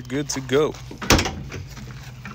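A truck tailgate latch clicks open.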